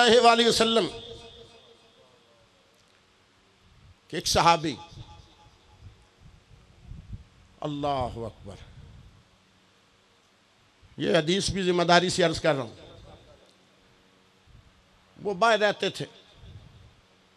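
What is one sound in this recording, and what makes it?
A middle-aged man speaks slowly and with feeling into a microphone, in bursts with long pauses, echoing in a large hall.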